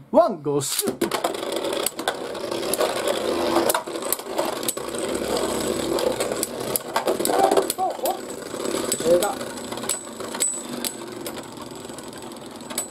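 Spinning tops clack sharply against each other.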